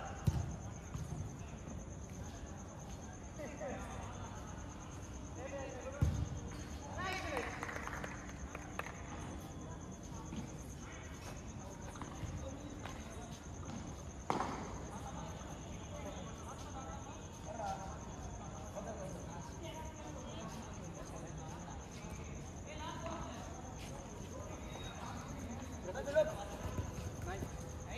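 Young men shout and call out to each other across an outdoor pitch.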